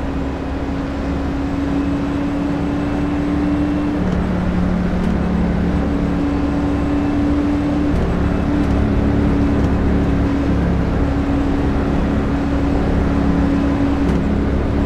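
A race car engine hums steadily at low speed, shifting pitch now and then.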